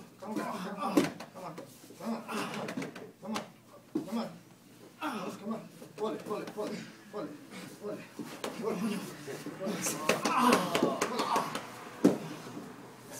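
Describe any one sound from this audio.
Bodies thump onto a padded mat.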